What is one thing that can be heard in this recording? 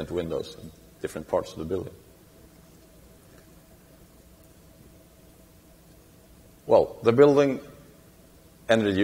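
A young man speaks calmly into a microphone, with long pauses.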